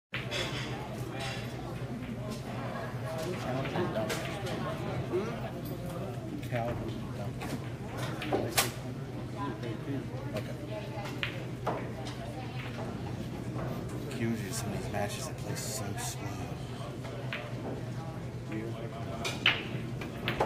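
Many people chat in a busy room.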